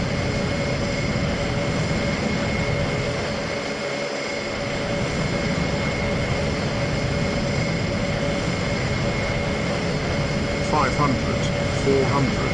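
A jet engine hums steadily as an aircraft glides in to land.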